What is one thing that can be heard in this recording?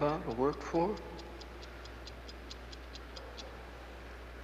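A clockwork timer ticks steadily and quickly.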